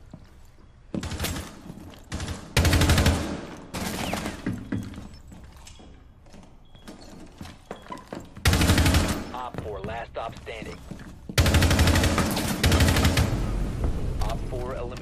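Gunshots fire in short, loud bursts.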